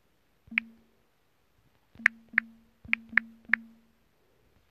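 Touchscreen key taps make short, sharp clicking sounds.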